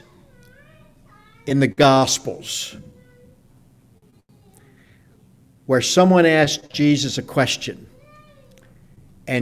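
A middle-aged man speaks with animation into a microphone in a room with slight echo.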